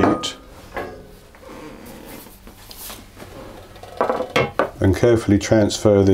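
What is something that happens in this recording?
A metal baking tray is set down on a counter.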